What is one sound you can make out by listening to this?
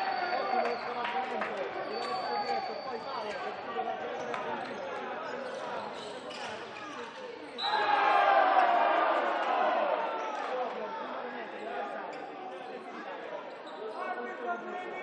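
A crowd cheers and chants in a large echoing hall.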